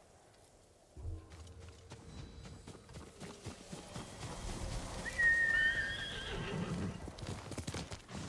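Footsteps run over grass and a dirt path.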